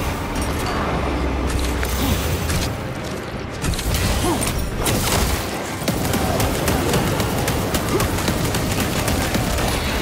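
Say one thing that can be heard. Monsters screech and snarl.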